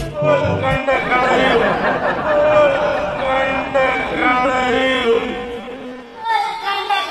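A middle-aged man speaks into a microphone to an audience.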